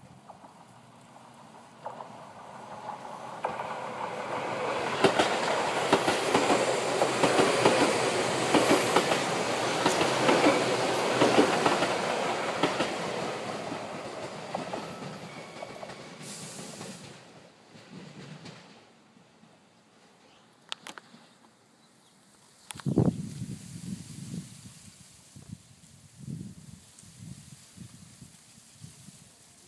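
Wind rustles through tall grass.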